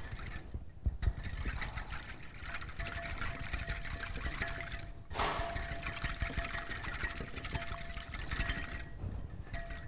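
A pepper mill grinds with a rapid, gritty crackle.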